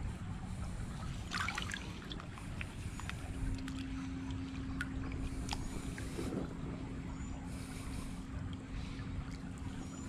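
Shallow water trickles and babbles over stones.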